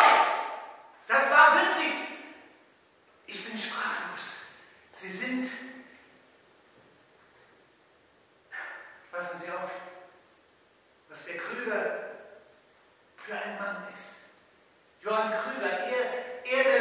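An elderly man speaks with animation in an echoing hall.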